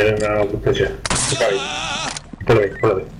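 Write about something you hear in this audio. A gun fires a shot at close range.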